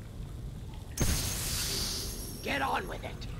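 A fiery blast bursts with a roaring whoosh that quickly fades.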